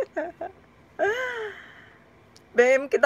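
A young woman laughs briefly.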